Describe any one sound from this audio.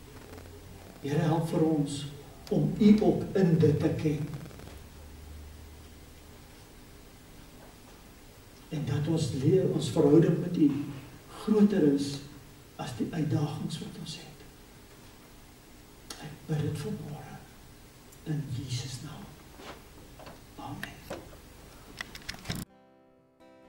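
An elderly man speaks slowly and earnestly through a microphone, with long pauses.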